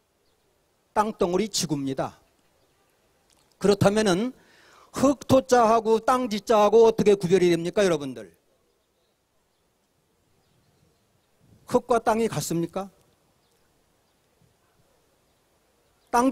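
A middle-aged man speaks through a microphone and loudspeaker outdoors, with pauses between phrases.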